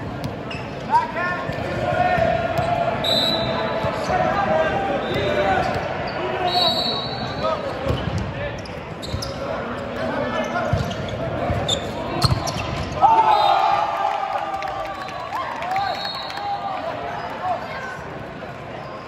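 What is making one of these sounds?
Teenage boys shout and cheer in an echoing gym.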